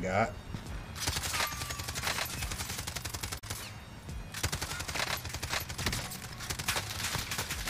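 Rapid gunshots crack.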